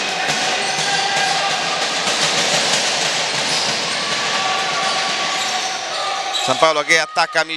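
A crowd murmurs and cheers in an echoing hall.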